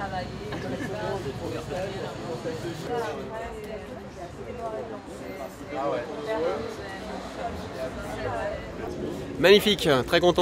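A group of adults talk casually outdoors.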